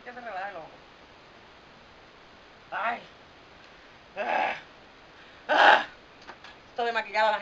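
A woman speaks close by in short, casual bursts.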